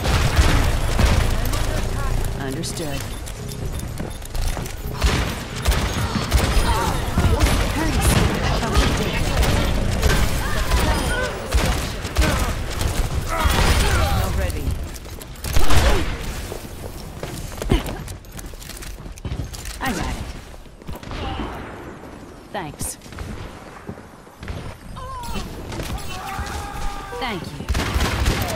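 Revolver shots ring out in rapid bursts.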